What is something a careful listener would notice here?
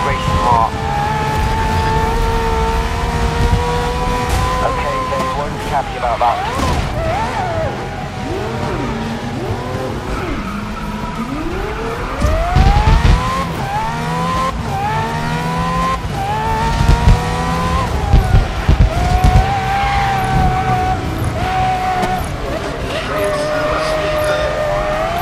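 Other racing car engines roar close by.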